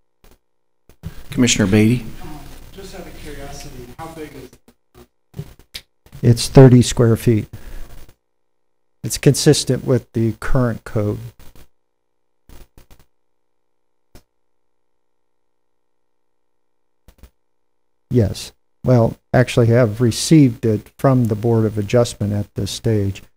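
A man speaks calmly into a microphone, heard over loudspeakers in a large room, pausing between phrases.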